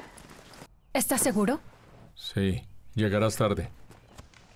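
A young woman speaks tensely close by.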